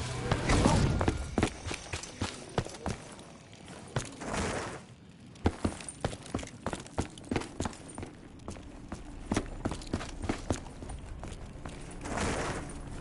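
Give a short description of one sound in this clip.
Footsteps thud on stone at a steady walking pace.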